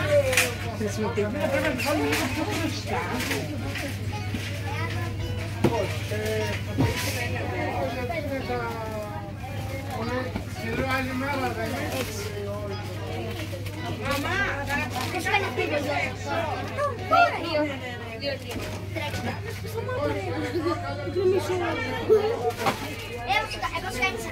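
Young boys chatter close by.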